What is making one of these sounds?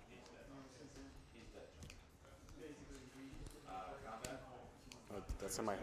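Playing cards tap and slide on a table.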